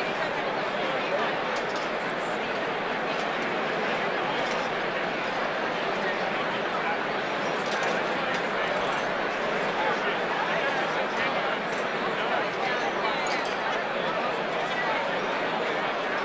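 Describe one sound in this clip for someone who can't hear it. A large crowd chatters loudly in a big echoing hall.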